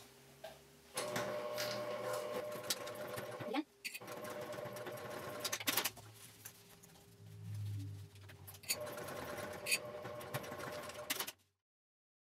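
A sewing machine hums as it stitches in short bursts.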